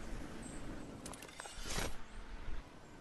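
A glider snaps open with a sharp flutter.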